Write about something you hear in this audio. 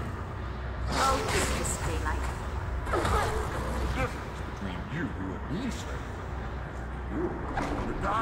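Heavy blows and whooshing strikes land in a scuffle.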